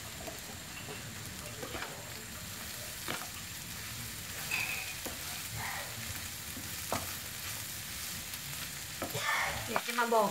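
A wooden spatula scrapes and knocks against a frying pan.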